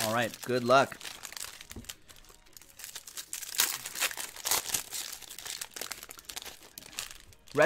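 Card packs and wrappers rustle and crinkle in hands.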